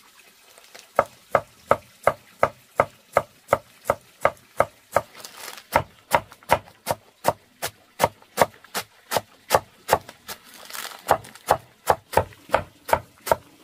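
A knife chops rapidly through greens onto a wooden board.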